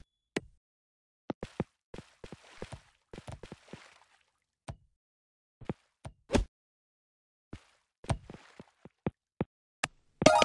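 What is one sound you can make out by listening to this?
A small ball clicks and knocks as it bounces along.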